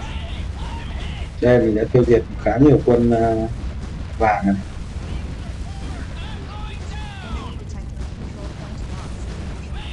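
Gunfire rattles.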